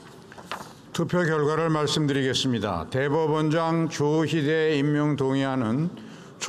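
An older man reads out calmly through a microphone.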